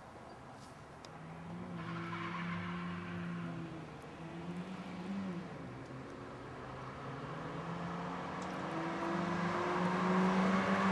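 Two car engines roar and grow louder as the cars speed closer.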